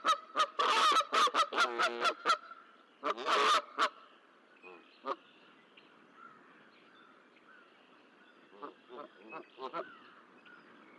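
Geese honk loudly in bursts.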